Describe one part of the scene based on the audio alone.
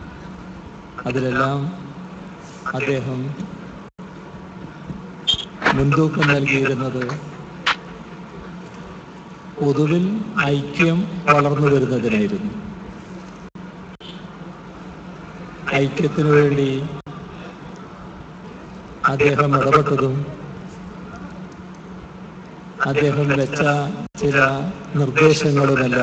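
A middle-aged man speaks into a microphone slowly, in short phrases, with long pauses.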